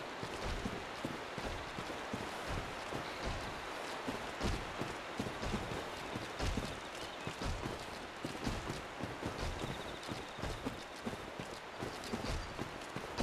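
Heavy footsteps thud steadily on soft ground.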